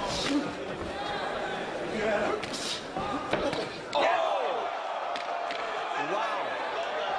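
Punches thud against a boxer's body.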